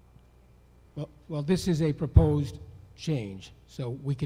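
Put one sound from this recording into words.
A man answers calmly over a loudspeaker.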